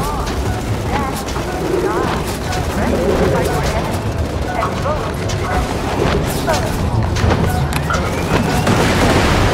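A creature screeches and chitters.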